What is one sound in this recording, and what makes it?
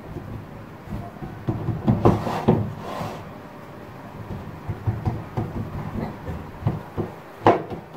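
Hands rub and smooth dough softly.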